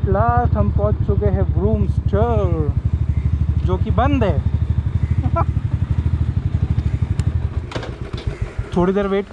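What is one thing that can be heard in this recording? A motorcycle engine idles with a steady low putter.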